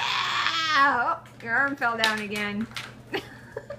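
A baby squeals and babbles excitedly.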